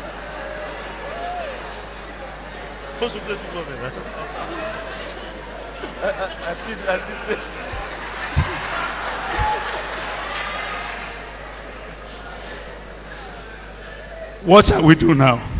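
An elderly man speaks into a microphone over loudspeakers in a large hall.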